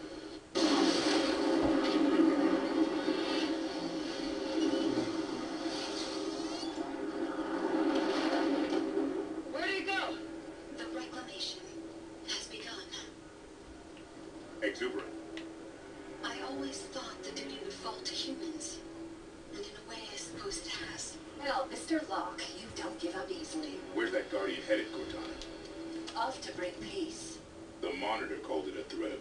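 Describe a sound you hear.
Game music plays through loudspeakers.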